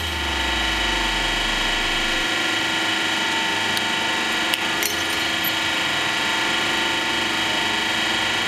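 A hydraulic press hums steadily.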